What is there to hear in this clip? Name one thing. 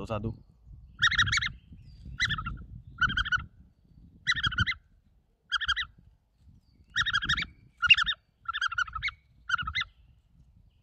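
A young man blows a game call in short, squeaky bursts.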